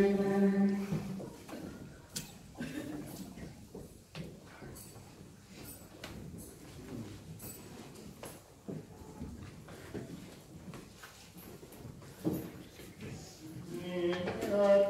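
A man speaks quietly in a low murmur.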